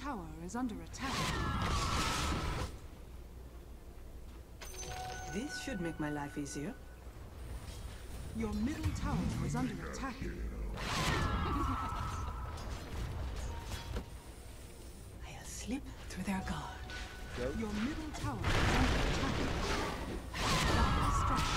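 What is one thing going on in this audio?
Magic spells blast and crackle in a fantasy battle.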